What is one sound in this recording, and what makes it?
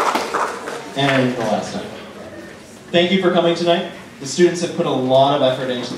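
A man speaks calmly into a microphone, heard over loudspeakers in a large hall.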